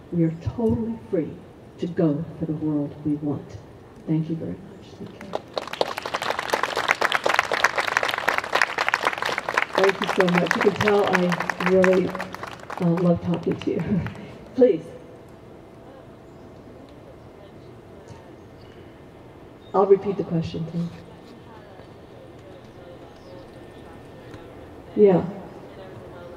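An older woman speaks calmly through a microphone outdoors.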